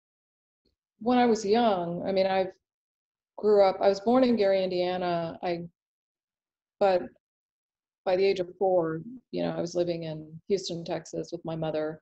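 A woman speaks calmly and thoughtfully, close to a microphone.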